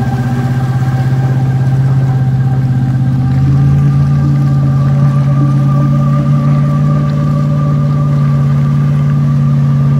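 A car engine drones steadily close by.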